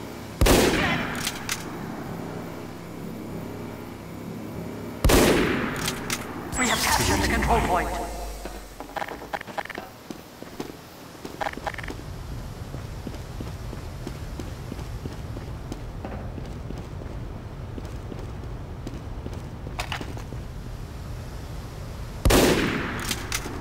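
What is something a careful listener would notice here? A rifle fires a loud, sharp shot that echoes briefly.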